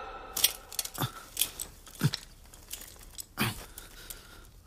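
A man grunts and breathes hard with effort, close by.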